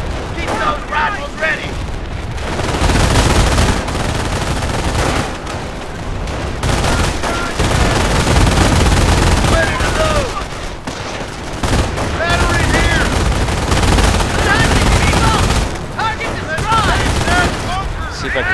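Gunfire rattles in a battle.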